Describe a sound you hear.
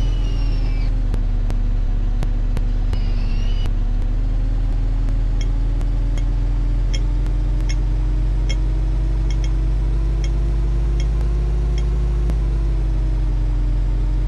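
A bus engine hums steadily as the bus drives along, slowly rising in pitch.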